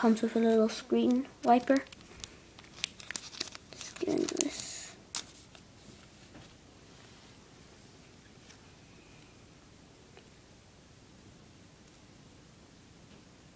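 A plastic film rustles and crinkles in someone's hands.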